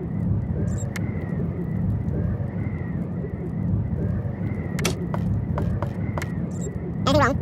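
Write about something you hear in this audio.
Game menu clicks sound sharply a few times.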